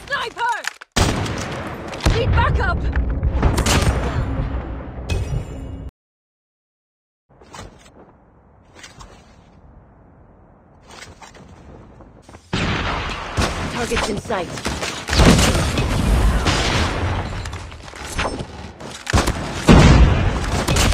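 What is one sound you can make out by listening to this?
Rapid gunshots fire close by.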